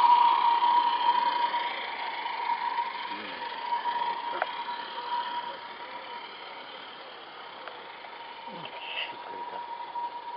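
Small model train wagons roll along the track with a steady whirring hum that slowly fades.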